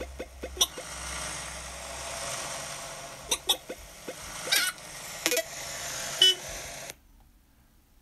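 Bleeping sound effects from a tablet game play.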